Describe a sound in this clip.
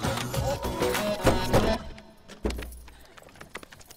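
A car door opens and slams shut.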